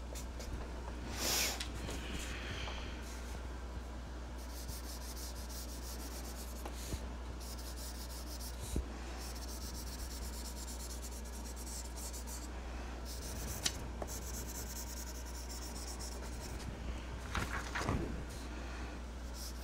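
Paper rustles and slides as it is moved.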